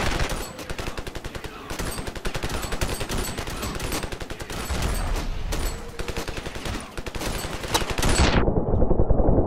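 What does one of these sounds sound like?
A rifle fires in rapid, crackling bursts.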